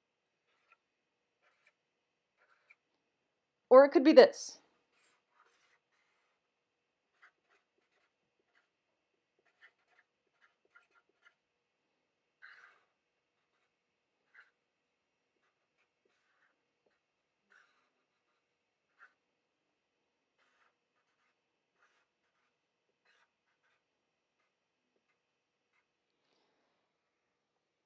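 A marker squeaks faintly on paper.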